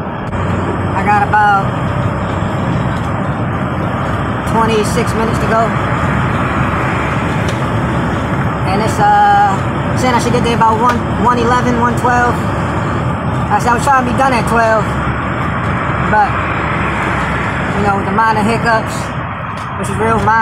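A man sings loudly and close by.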